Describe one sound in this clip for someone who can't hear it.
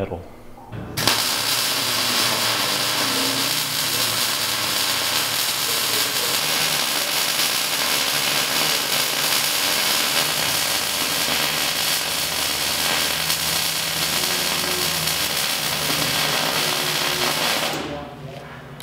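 An angle grinder whines loudly as it grinds metal.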